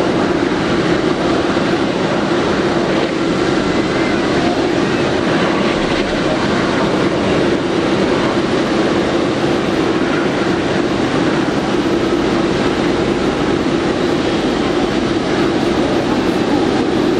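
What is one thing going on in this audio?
Jet engines roar loudly and steadily close by.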